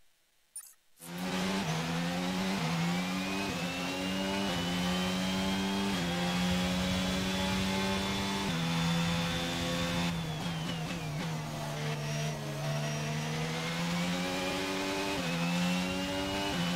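A racing car engine roars loudly, rising in pitch and dropping at each gear change.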